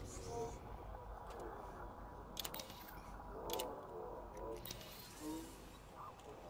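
Menu beeps click softly.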